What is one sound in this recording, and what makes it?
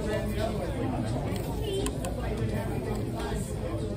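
A woman crunches a crisp tortilla chip.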